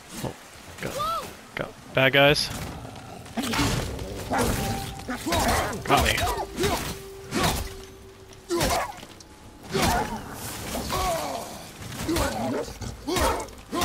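A heavy axe strikes with thuds and clangs.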